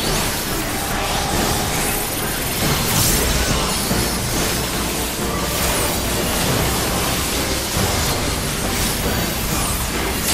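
Magic spells burst and crackle in a game battle.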